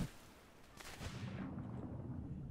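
Water splashes and swirls.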